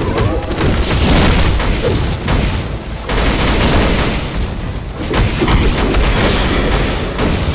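Electric energy crackles and zaps.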